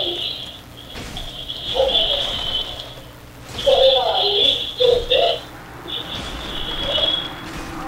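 Metal blades clash and strike with sharp clangs.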